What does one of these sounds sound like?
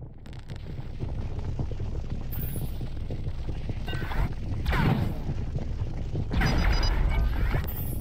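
A laser beam hums and crackles as it fires.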